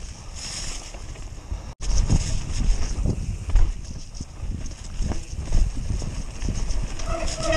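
Mountain bike tyres rattle and thump over a bumpy dirt trail.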